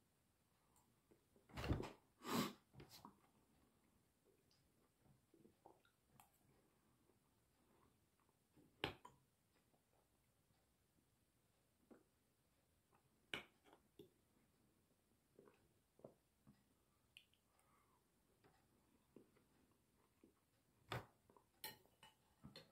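A young man chews food with his mouth close by.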